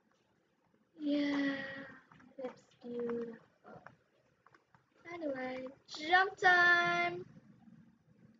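A young boy speaks animatedly into a nearby microphone.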